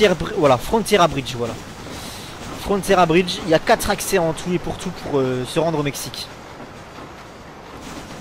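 A steam train rumbles across a bridge.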